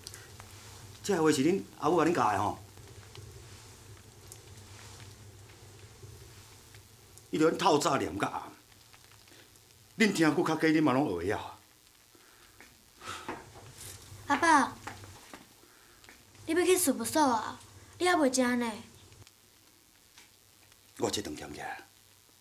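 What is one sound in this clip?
A man speaks nearby in firm, reproachful bursts.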